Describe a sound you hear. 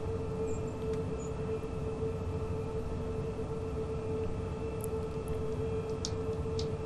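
A train rumbles steadily along the tracks with a low drone.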